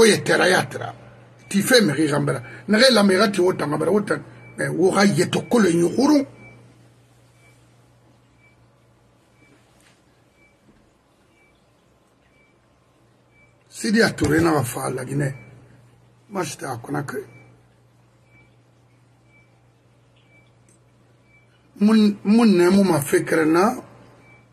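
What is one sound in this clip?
An elderly man speaks with animation into a microphone, heard as if over an online call, with long pauses.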